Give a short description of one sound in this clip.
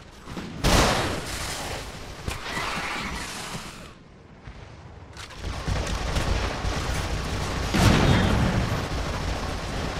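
A rifle fires in loud bursts of gunshots.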